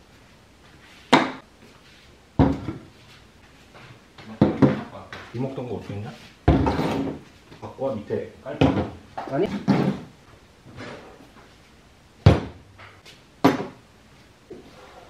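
Dishes and bowls are set down on a table with light knocks.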